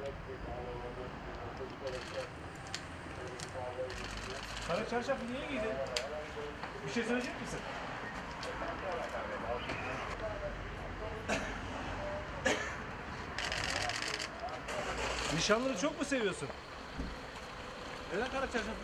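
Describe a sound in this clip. Men talk loudly nearby in an echoing space.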